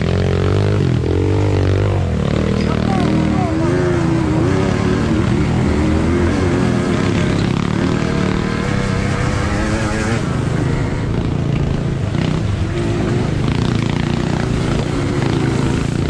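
Motorcycle tyres splash through a shallow stream.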